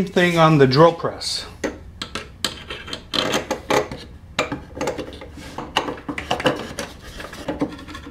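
A wooden tube knocks against a wooden bench.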